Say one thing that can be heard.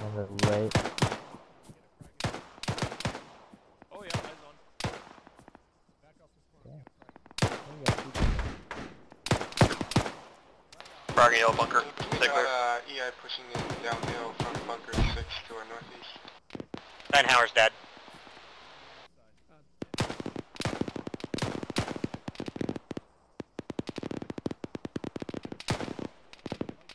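Gunshots crack repeatedly, some near and some distant.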